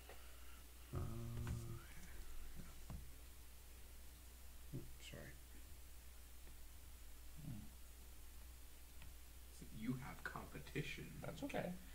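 Small plastic pieces tap and slide on a tabletop.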